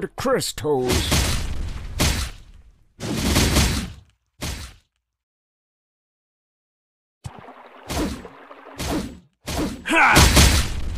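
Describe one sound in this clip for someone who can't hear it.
Fiery magic blasts roar in bursts.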